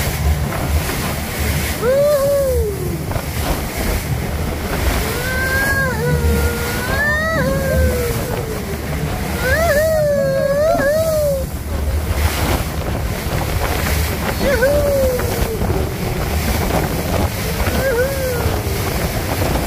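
Water sprays and splashes loudly against the side of a fast boat.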